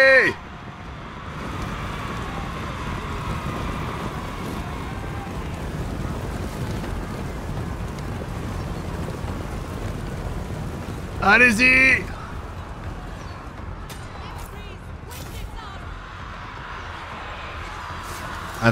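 Many horses' hooves thunder in a rumbling charge.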